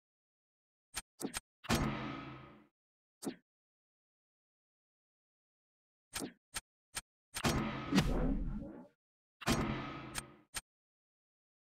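Game menu clicks and short chimes sound as choices are made.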